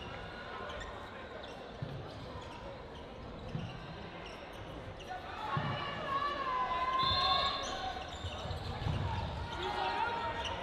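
Players call out to each other in a large echoing hall.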